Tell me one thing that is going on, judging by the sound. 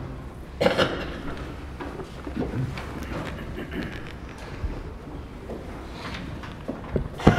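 A heavy book is handled and its pages rustle.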